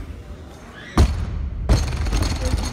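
A heavy barbell crashes onto the floor with a loud thud and clanging plates.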